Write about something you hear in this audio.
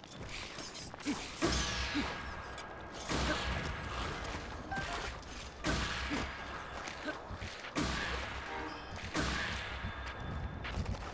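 Bursts of crackling electric blasts whoosh loudly.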